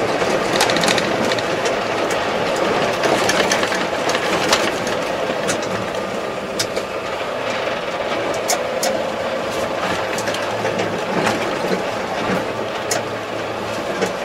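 A tractor engine rumbles steadily inside a cab.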